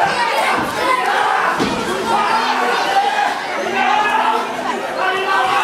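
A crowd of spectators shouts and cheers in an indoor hall.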